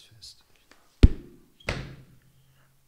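A book thuds down onto a table.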